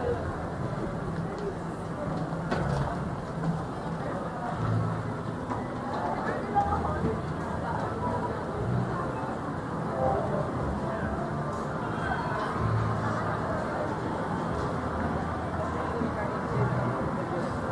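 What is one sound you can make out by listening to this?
A crowd murmurs in a large echoing indoor hall.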